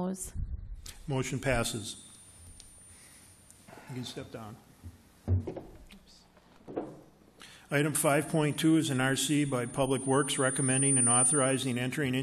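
An elderly man speaks calmly through a microphone, reading out.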